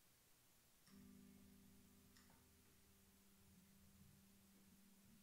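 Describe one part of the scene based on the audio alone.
An electric guitar plays a sustained chord through an amplifier.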